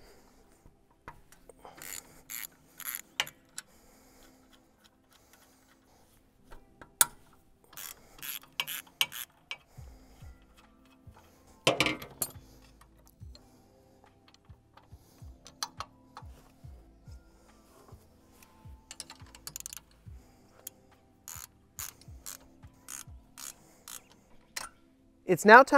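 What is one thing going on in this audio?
Metal parts clink and knock together.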